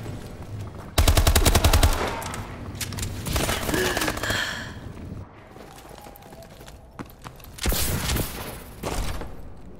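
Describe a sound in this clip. Rapid automatic gunfire rattles loudly in quick bursts.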